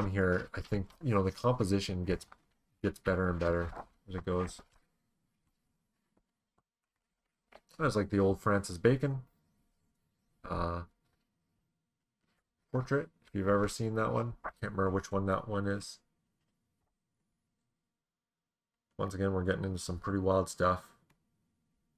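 A man talks calmly into a microphone, in short bursts with pauses.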